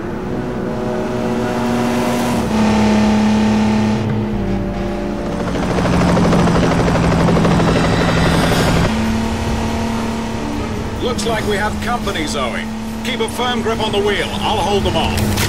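A car speeds along a road.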